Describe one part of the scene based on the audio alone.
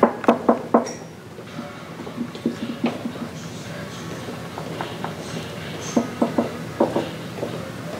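Footsteps echo on a hard floor in a hallway.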